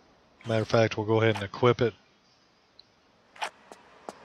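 A pistol clicks as it is drawn.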